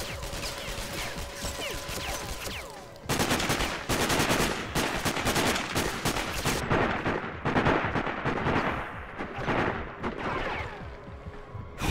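A rifle fires in short, rapid bursts.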